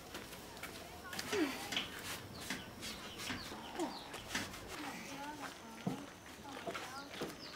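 A cloth rubs over a bicycle's frame.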